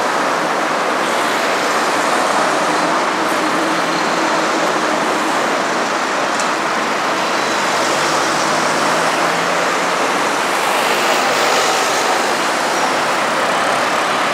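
Traffic drives past steadily on a nearby street.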